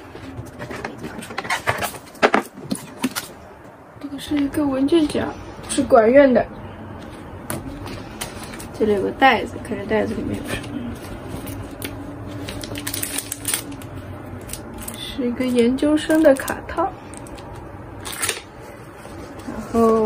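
Paper and plastic packaging rustle and crinkle.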